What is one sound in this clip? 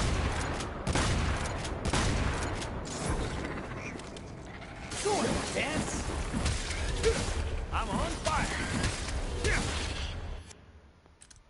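Gunshots and blade strikes crack and clash in rapid bursts.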